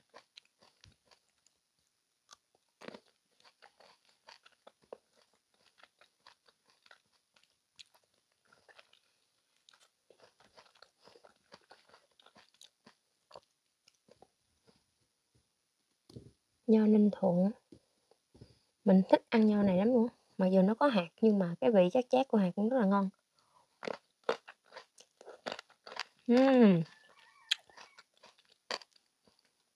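A young woman chews fruit with soft wet mouth sounds close to a microphone.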